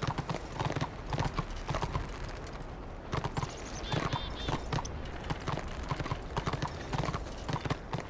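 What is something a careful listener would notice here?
Hooves thud rhythmically as a horse gallops over grass.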